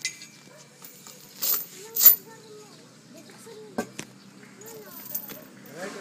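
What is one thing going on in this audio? A metal chain clinks and rattles.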